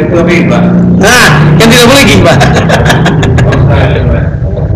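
A man laughs loudly into a microphone.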